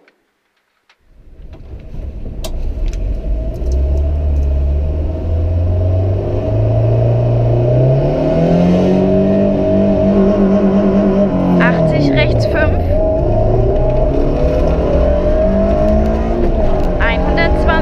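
A rally car engine roars loudly from inside the cabin, revving up and down.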